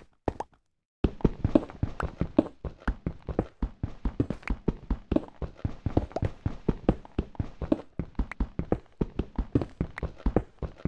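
A pickaxe chips rapidly at stone, with blocks breaking apart.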